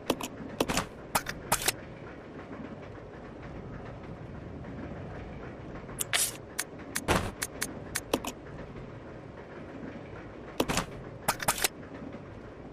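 Short menu clicks tick in quick bursts.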